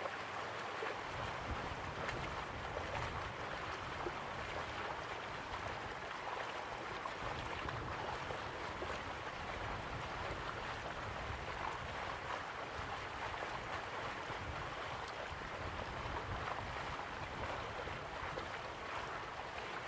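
Waterfalls rush and splash steadily.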